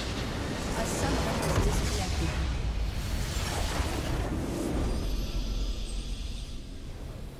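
A structure in a video game explodes with a deep rumble.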